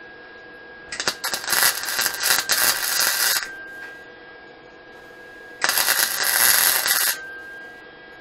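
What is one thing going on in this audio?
An arc welder crackles and hisses loudly in short bursts.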